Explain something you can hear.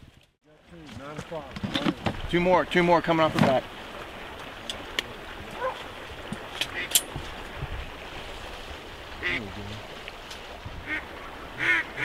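Geese honk loudly across the water.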